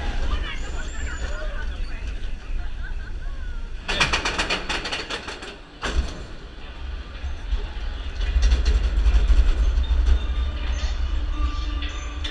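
Young riders cheer and scream with excitement.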